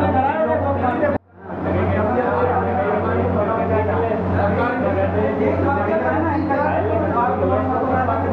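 A crowd of men talks together at close range.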